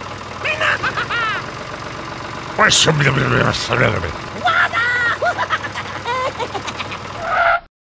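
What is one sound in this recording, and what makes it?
A small toy tractor's electric motor whirs as the tractor rolls over sand.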